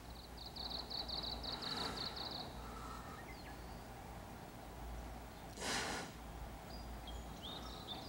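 A bamboo flute plays a soft tune.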